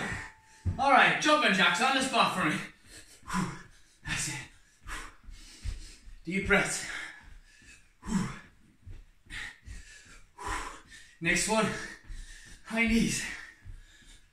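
Feet thump rhythmically on a wooden floor as a man jumps.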